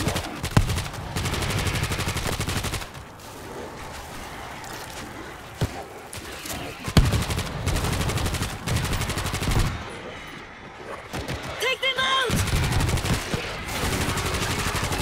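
An automatic rifle fires in rapid bursts.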